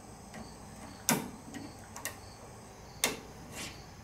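Pliers click against metal.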